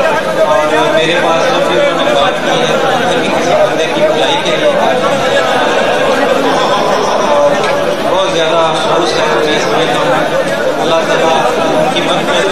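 A large crowd of men chants and shouts loudly close by.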